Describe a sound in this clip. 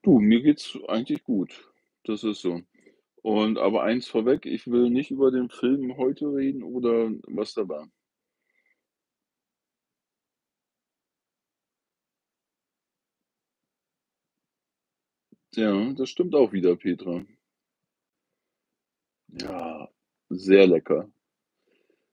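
A middle-aged man speaks calmly and close by, with long pauses.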